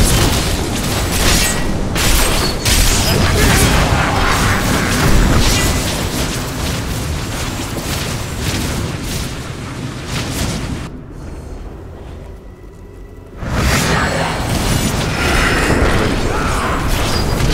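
Magic spells crackle and blast during a fierce fight.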